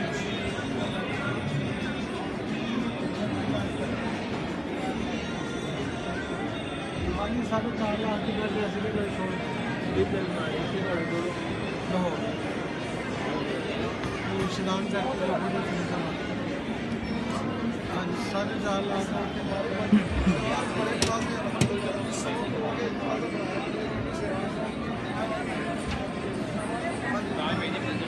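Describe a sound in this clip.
Many people chatter nearby.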